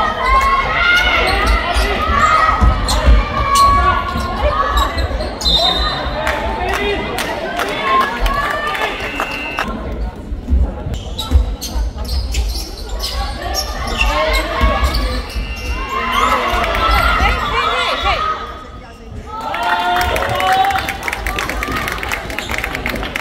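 A basketball thumps as it bounces on a wooden floor.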